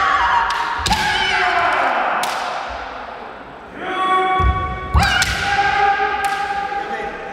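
Bamboo swords clack and strike sharply.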